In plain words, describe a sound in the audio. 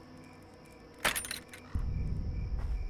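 A metal cage gate rattles and clanks.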